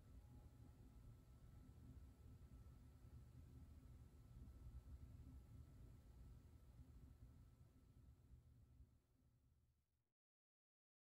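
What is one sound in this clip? A piano plays softly in a reverberant hall and fades away.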